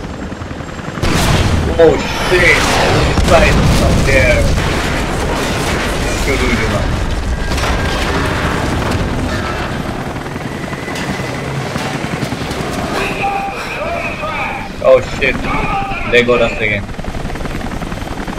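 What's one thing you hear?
A helicopter hovers overhead with a loud, thudding rotor.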